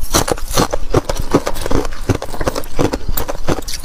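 Fingers rustle through crushed ice in a plastic bowl.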